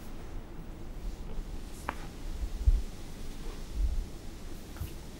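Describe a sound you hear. Footsteps thud softly on a stage floor.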